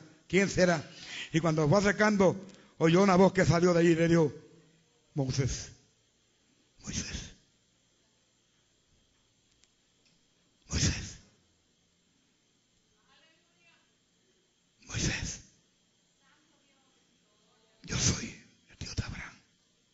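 An elderly man preaches with animation through a microphone.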